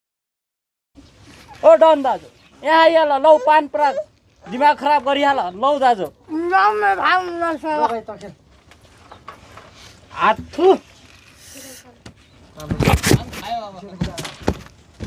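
A young man speaks loudly and with animation nearby.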